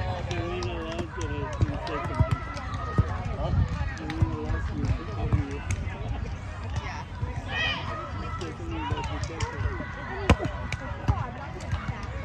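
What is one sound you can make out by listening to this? A volleyball is hit with a dull thump.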